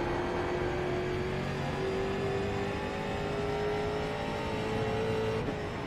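A race car engine roars steadily, its pitch slowly climbing, then briefly dropping.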